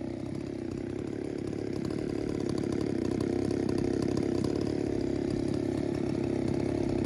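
A chainsaw engine idles close by with a steady, rapid putter.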